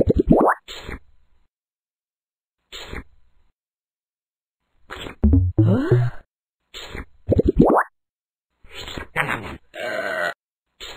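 Playful game sound effects pop and chime in short bursts, with quick rising whoops.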